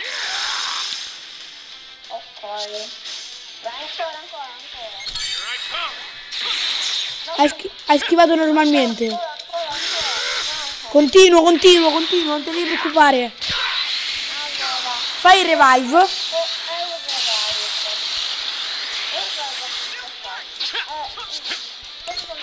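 Punches land with sharp thuds and whooshes in a fast fight.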